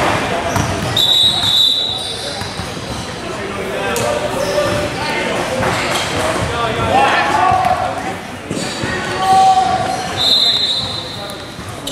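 Basketball players' sneakers squeak on a hardwood gym floor.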